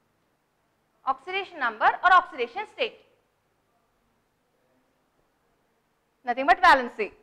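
A woman speaks calmly and clearly into a nearby microphone, with pauses.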